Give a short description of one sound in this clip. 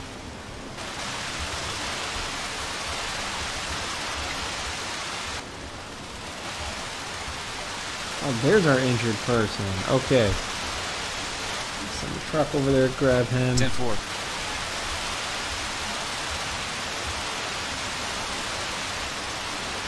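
Fire hoses spray water with a steady hiss.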